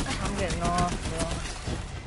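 Laser gunfire crackles and blasts.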